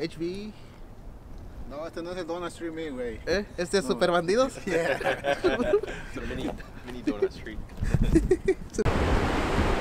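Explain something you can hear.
Young men talk and joke close by, outdoors.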